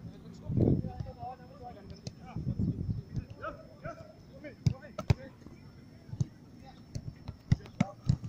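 A football thuds against hands.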